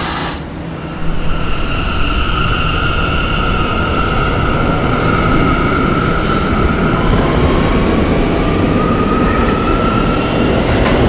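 Train wheels rumble steadily on the tracks.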